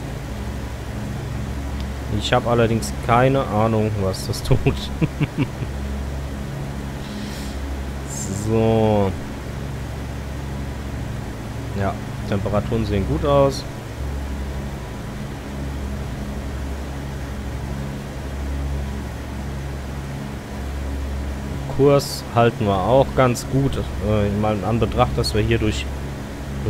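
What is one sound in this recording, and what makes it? Aircraft engines drone steadily.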